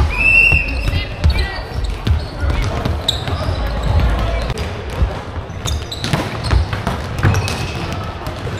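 Young players call out and shout to each other.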